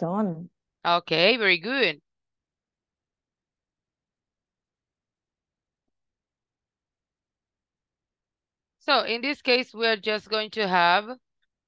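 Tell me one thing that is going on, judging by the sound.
A young woman speaks clearly through an online call, in short bursts with pauses.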